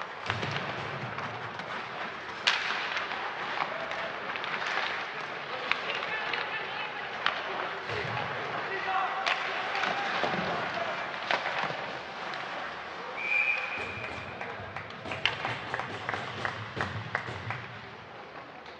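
Sticks clack against the puck and each other in sharp knocks.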